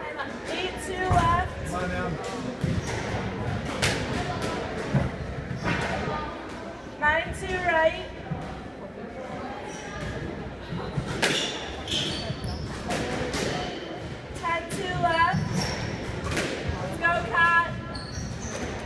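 Rubber shoes squeak on a wooden court floor.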